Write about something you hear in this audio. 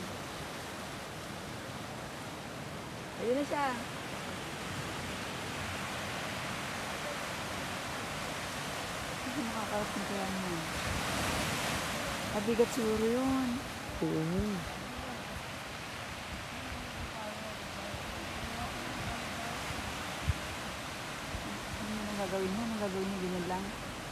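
Wind blows steadily across open water.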